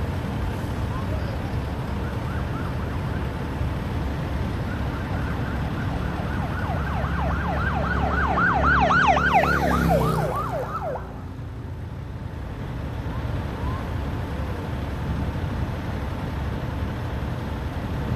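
Cars drive past on the road nearby.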